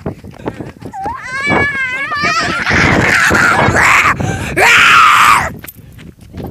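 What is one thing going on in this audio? A boy shouts and squeals loudly right at the microphone.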